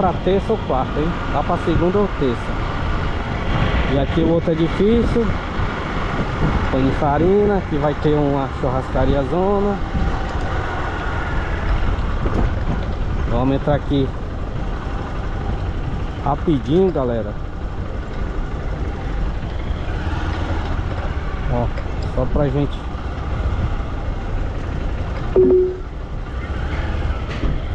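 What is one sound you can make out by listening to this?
A motorcycle engine hums and revs while riding.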